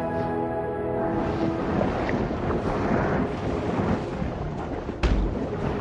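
A small creature swims through water with a soft watery swish.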